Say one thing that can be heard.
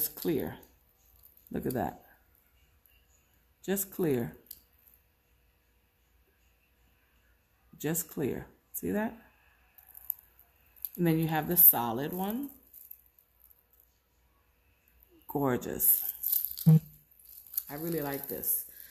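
Metal chain links jingle softly in a woman's hands.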